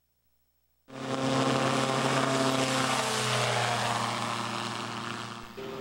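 A small aircraft engine drones loudly as a microlight flies low past and away.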